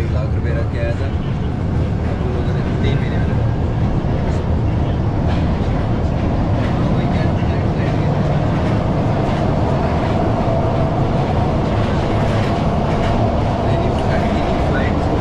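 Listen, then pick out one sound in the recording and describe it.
Metal wheels squeal and screech against the rails.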